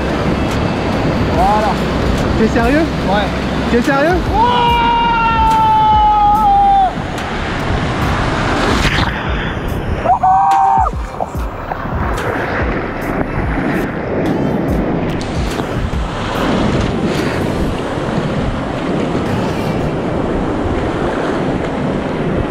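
Whitewater rapids roar and churn loudly close by.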